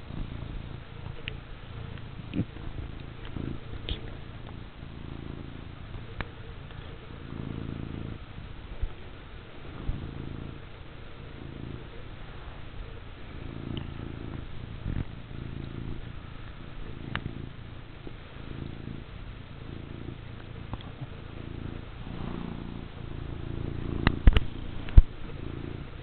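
A cat purrs very close by.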